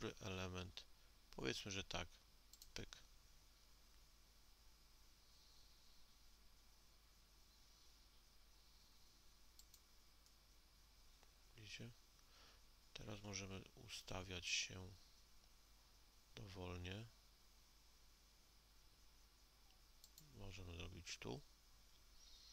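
A man speaks calmly in short phrases into a microphone.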